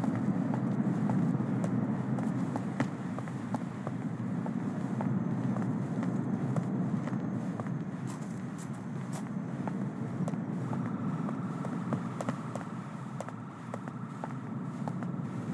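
Footsteps tap on pavement as a man walks and then runs.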